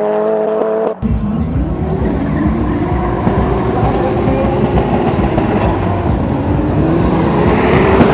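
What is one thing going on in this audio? A powerful car engine rumbles and roars up close.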